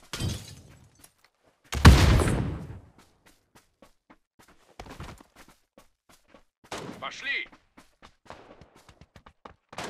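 Footsteps patter quickly on grass and floors.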